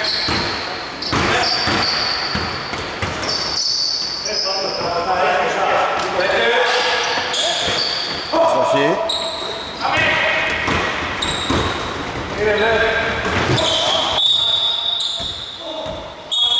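Sneakers squeak sharply on a hardwood floor in an echoing hall.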